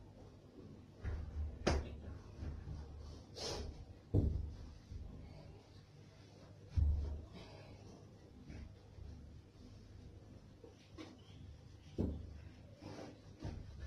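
Things knock and bump on a hard surface nearby.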